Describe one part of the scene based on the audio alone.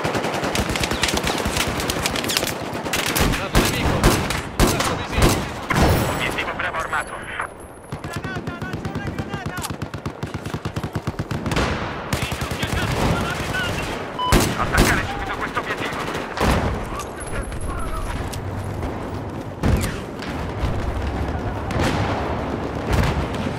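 Gunfire rattles in the distance.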